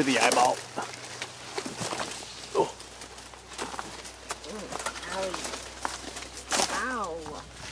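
Leaves rustle close by.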